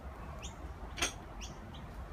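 Metal weight plates clank as a barbell is lifted.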